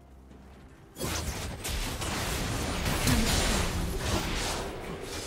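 Weapons clash and strike in rapid bursts.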